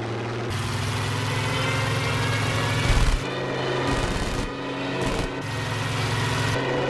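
A propeller plane's engine drones loudly and steadily.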